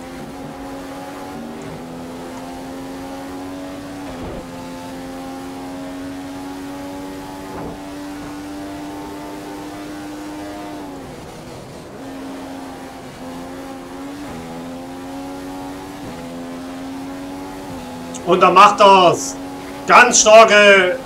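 A racing car engine whines at high revs, dropping in pitch as it slows and then climbing again.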